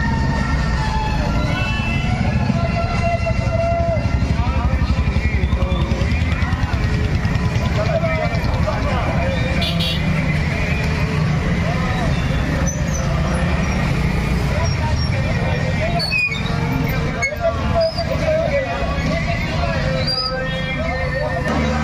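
Motorcycle engines rumble and rev close by.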